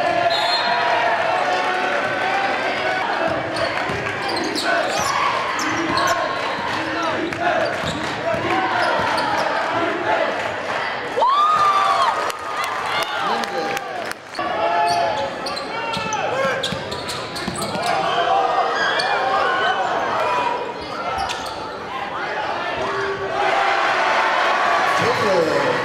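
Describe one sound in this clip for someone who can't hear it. A crowd murmurs and cheers in an echoing gym.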